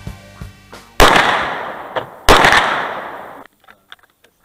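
A handgun fires two loud shots that echo outdoors.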